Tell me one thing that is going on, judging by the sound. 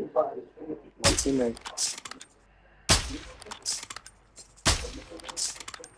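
A rifle fires several loud, sharp shots.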